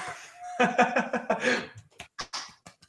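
A young man laughs excitedly over an online call.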